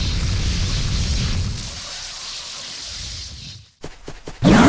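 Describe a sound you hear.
Electricity crackles and hisses steadily.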